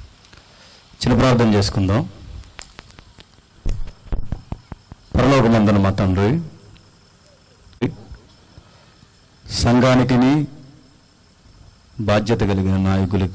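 A young man sings slowly through a microphone in long, held phrases with pauses between them.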